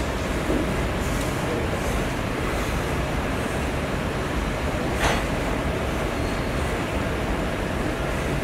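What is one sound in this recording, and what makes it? Weight plates on an exercise machine clank as they lift and drop.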